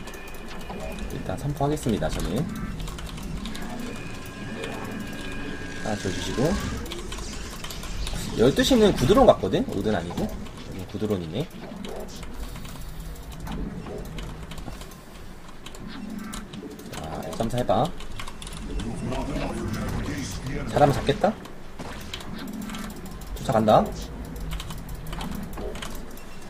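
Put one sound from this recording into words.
Short electronic game blips and chimes sound now and then.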